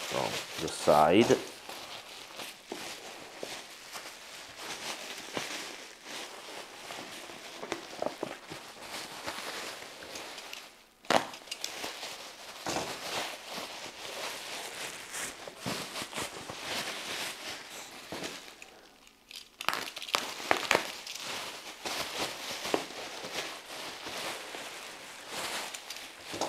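Bubble wrap crinkles and rustles as hands handle it.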